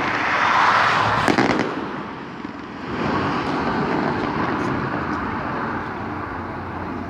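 Fireworks crackle and fizzle overhead.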